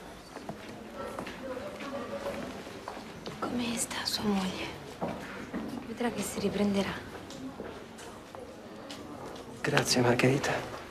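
A man speaks quietly and earnestly.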